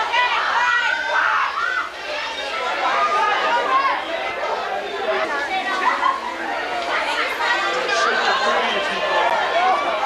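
A crowd of young people chatters and shouts loudly all around.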